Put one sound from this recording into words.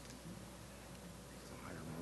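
Papers rustle as a man hands over a document.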